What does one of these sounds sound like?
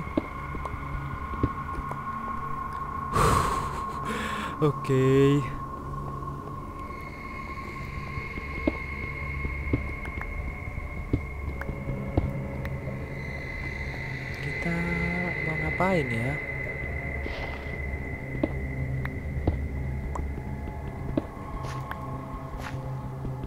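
Blocks of stone crunch and crack under a pickaxe's blows.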